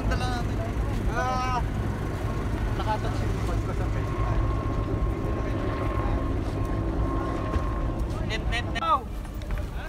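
A helicopter drones overhead in the distance.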